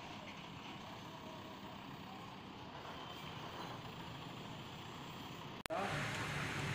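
A backhoe engine rumbles outdoors.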